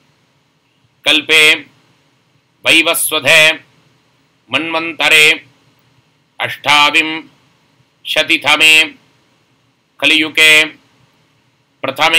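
A man speaks calmly in short phrases close to a microphone.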